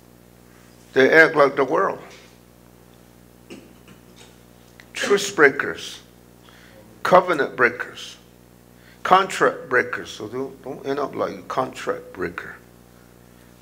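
A middle-aged man speaks slowly and earnestly through a microphone, in short phrases with pauses, heard over loudspeakers in a room.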